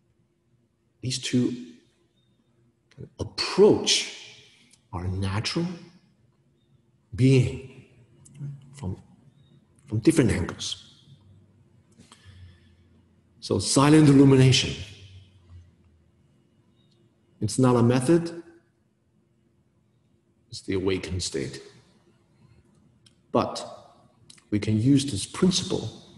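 A man speaks calmly and close by, pausing between phrases.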